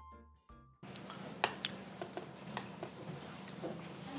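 Metal spoons scrape and clink against a hot pan.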